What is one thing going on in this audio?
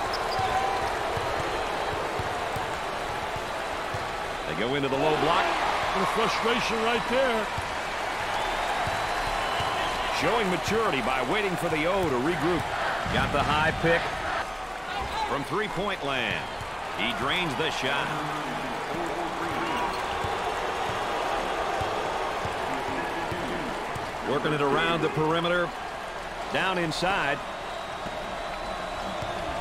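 A large crowd murmurs and cheers steadily.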